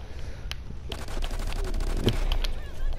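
A pistol fires a rapid series of shots.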